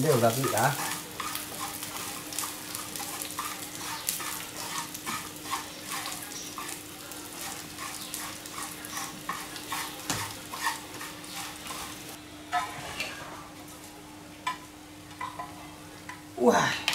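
Chopsticks scrape and tap against a pan.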